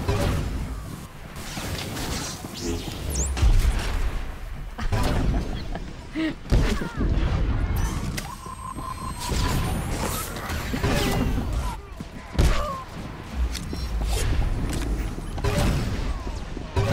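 Laser blasts and combat effects crackle and boom in quick bursts.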